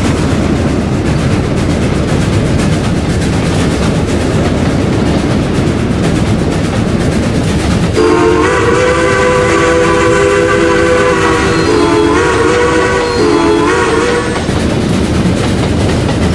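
A steam locomotive rumbles and chugs steadily along the track.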